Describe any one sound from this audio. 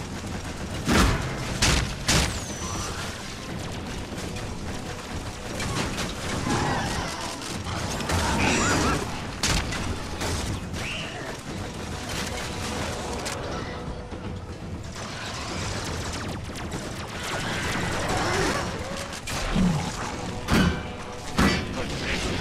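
Gunshots and explosions bang sharply.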